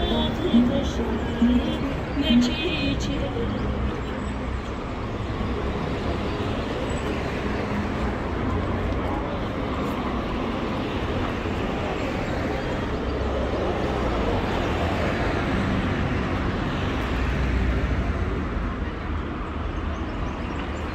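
Traffic rumbles steadily along a nearby road outdoors.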